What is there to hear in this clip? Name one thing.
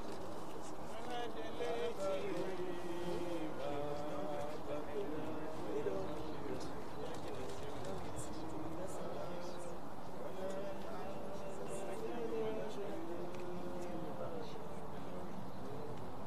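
A group of men and women sing slowly together outdoors, a little distant.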